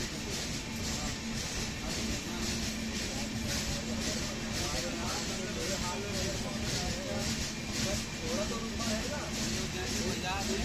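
A train rumbles along the tracks with a steady rhythmic clatter of wheels.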